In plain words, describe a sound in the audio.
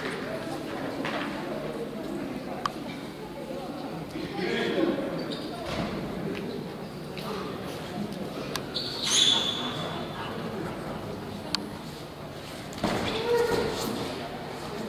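People murmur and call out in a large echoing hall.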